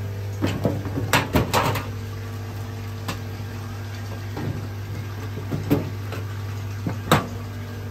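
A metal tray clatters against a steel sink.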